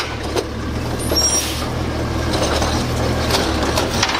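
A garbage truck's hydraulic arm whines as it lifts a bin.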